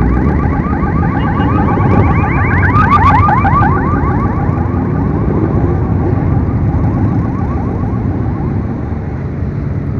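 Motorcycle engines rumble as a line of motorbikes rides past close by.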